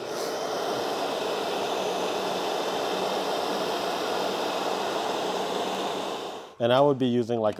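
A heat gun blows with a steady roar.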